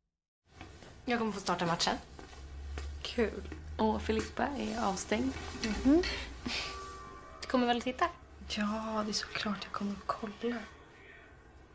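A young woman speaks softly up close.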